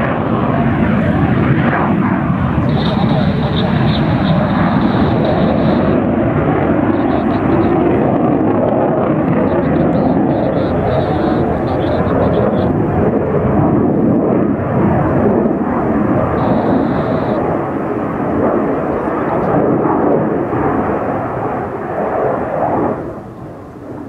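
A jet roars loudly overhead.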